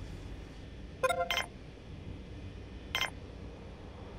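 Short electronic interface chimes sound a few times.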